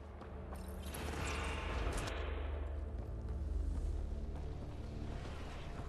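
Electricity crackles and sizzles across a floor.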